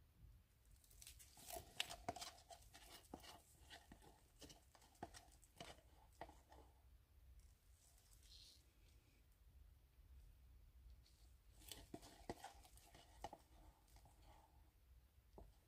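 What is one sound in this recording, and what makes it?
A stick scrapes and clicks against the inside of a plastic cup.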